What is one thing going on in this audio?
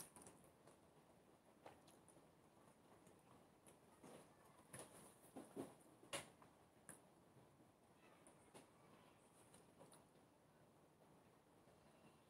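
A young woman eats with soft chewing sounds.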